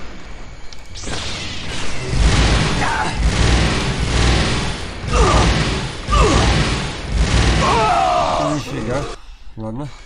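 Loud mechanical rumbling and explosions roar.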